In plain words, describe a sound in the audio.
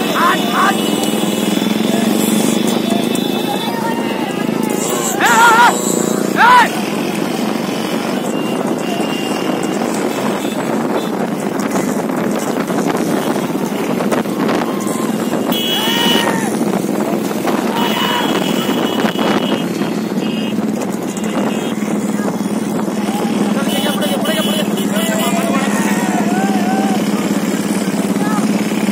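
Motorcycle engines hum steadily close by.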